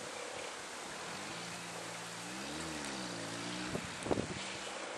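A motorbike engine revs up and down as it rides past.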